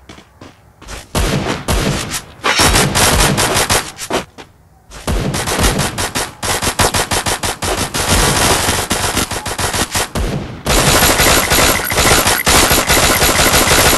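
Guns fire in rapid, rattling bursts.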